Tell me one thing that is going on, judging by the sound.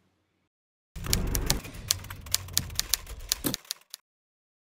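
Keys clatter quickly as someone types.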